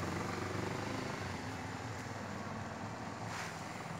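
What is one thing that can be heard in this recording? A car drives along a wet road.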